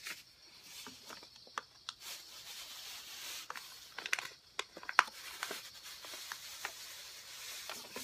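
Paper crinkles and rustles under a hand.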